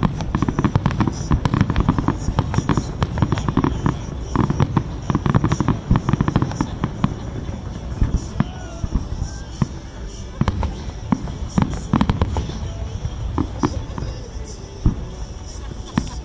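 Deep booms of fireworks rumble on and on.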